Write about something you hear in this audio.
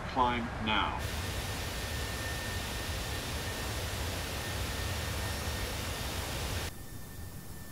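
A jet airliner's engines roar steadily in flight.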